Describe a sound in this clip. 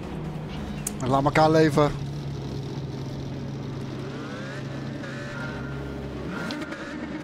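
Racing car engines idle and rumble.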